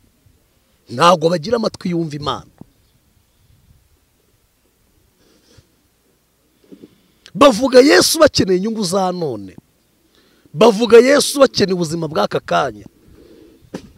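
A man speaks forcefully into a close microphone, in loud emphatic bursts.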